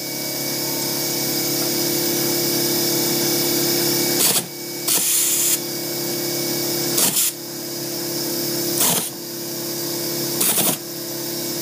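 An air tool whirs and hammers in short bursts.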